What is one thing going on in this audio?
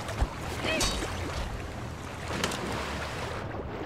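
Water splashes as something wades through it.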